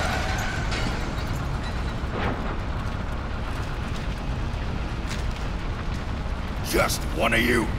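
A heavy vehicle engine rumbles low and steady.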